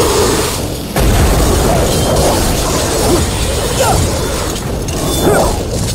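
A huge beast rumbles and crashes through sand.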